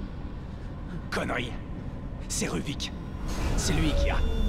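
A man speaks angrily.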